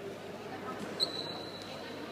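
Sneakers squeak sharply on the hall floor.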